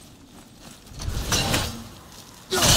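A thrown axe whooshes back through the air.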